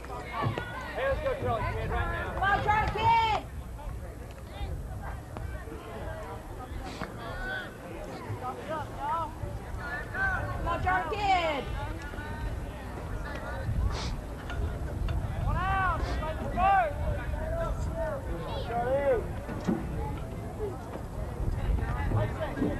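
Young men shout and cheer from a distance outdoors.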